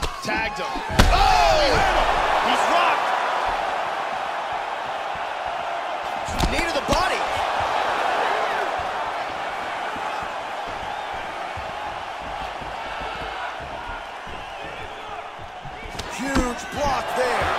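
Punches thud against a body.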